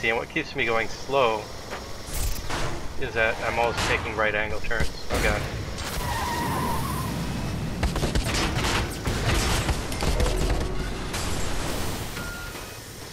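A car engine revs as a vehicle speeds along a road.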